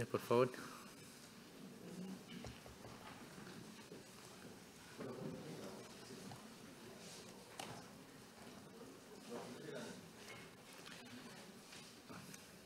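People murmur quietly as they move about a large room.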